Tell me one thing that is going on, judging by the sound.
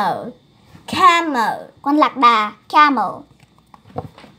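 A second young girl speaks cheerfully, close by.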